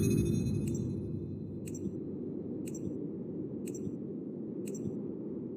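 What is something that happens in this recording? A countdown ticks once each second.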